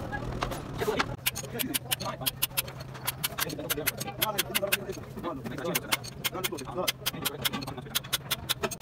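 A wrench clicks and clinks against metal parts.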